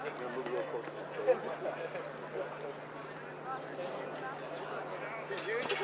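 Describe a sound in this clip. Several young men chatter in a crowd outdoors.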